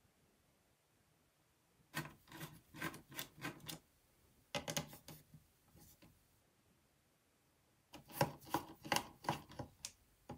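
Small parts click and tap as hands work inside a computer.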